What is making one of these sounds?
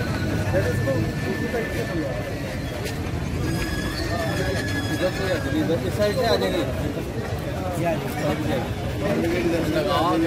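A crowd of men talk over one another nearby.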